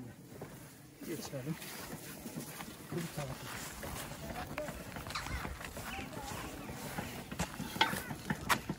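A wheelbarrow rolls over grass.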